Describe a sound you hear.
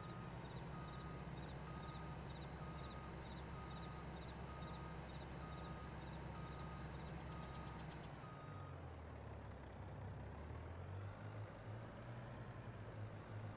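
A truck engine hums low and steady as it drives.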